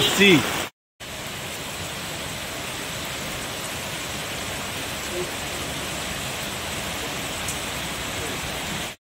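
Rainwater rushes across a flooded street.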